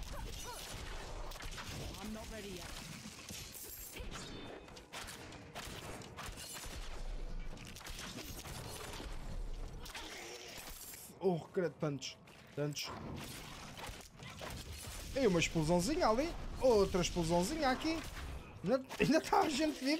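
Sharp blows and magic blasts crackle during a fight.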